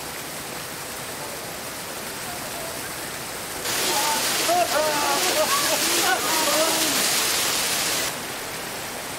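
A waterfall splashes and roars steadily.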